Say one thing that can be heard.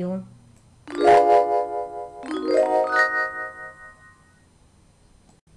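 A short, bright chime tune plays.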